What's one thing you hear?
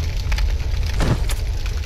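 A spear strikes with a crackling burst.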